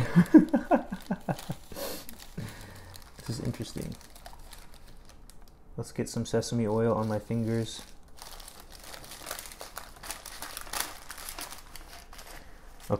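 Paper crinkles and rustles as hands wrap food in it.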